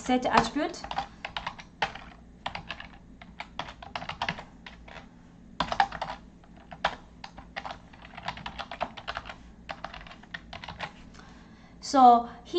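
Keys click quickly on a computer keyboard.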